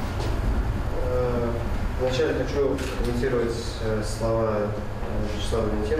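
A young man reads aloud calmly.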